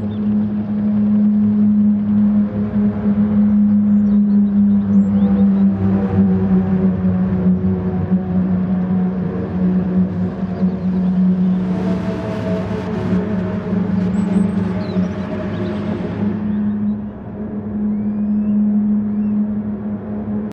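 A racing car engine drones loudly and steadily, its pitch shifting as the car changes speed.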